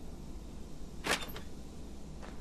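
A metal door swings open with a clunk.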